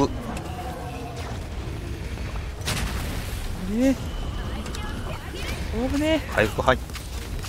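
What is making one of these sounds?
Sword strikes and magic blasts crash in a game fight.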